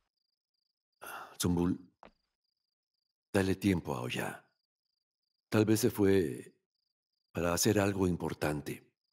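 An elderly man speaks in a strained, emotional voice nearby.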